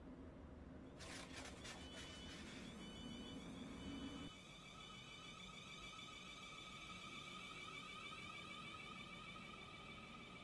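An electric train pulls away with a rising whine.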